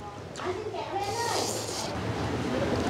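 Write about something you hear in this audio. A man slurps noodles loudly.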